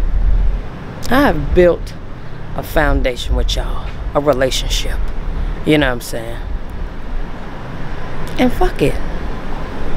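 A young woman talks close to the microphone in short, animated bursts.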